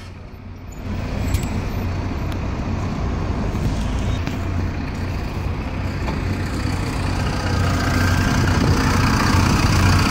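A bus engine idles outdoors and then revs up.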